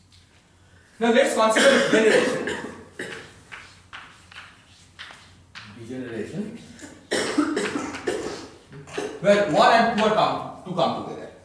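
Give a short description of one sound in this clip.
A man speaks steadily, as if lecturing.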